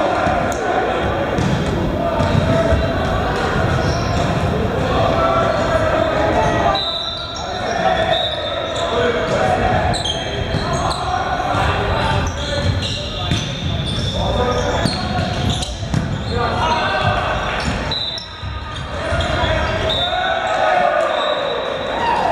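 Many voices chatter and call out in a large echoing hall.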